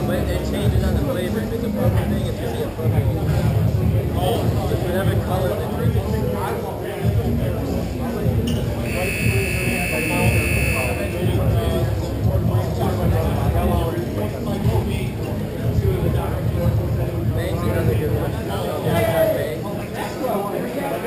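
Voices chatter and call out in a large echoing hall.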